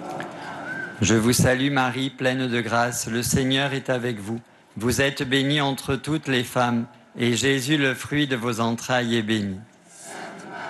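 A man speaks calmly and clearly through a microphone and loudspeaker.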